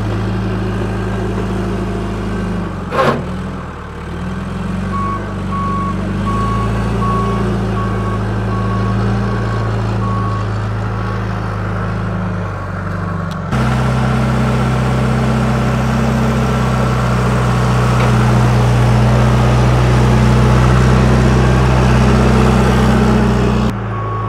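A diesel backhoe engine rumbles steadily nearby.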